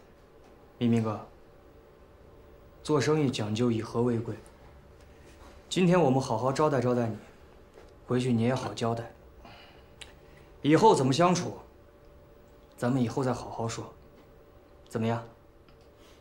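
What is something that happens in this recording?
A young man speaks calmly and firmly, close by.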